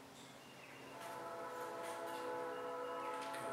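An old car engine hums steadily.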